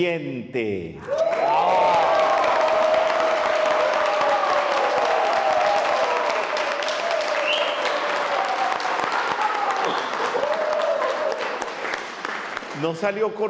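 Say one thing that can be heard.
An elderly man laughs into a microphone.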